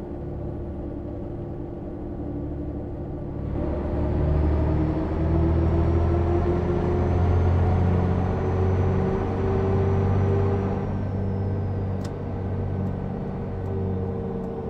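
A bus engine hums and rises in pitch as the bus speeds up, then eases off.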